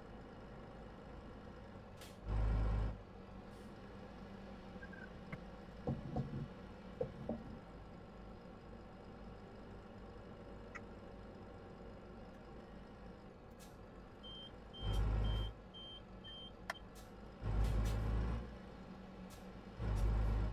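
A truck engine idles and hums steadily.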